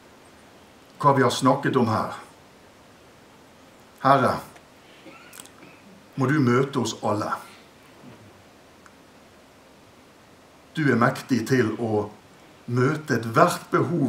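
A middle-aged man speaks fervently into a microphone in short bursts with pauses.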